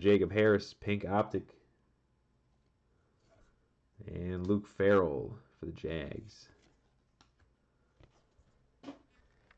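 Trading cards rustle softly as hands handle them.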